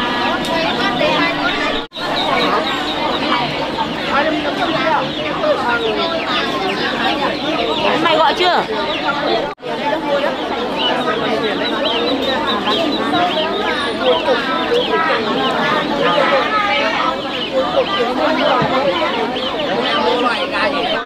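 Chicks chirp and cheep busily nearby.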